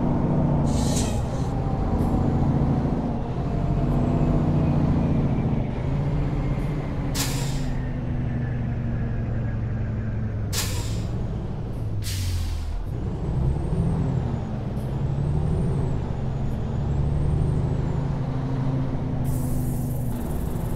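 A truck engine rumbles steadily, rising and falling in pitch as it shifts gears.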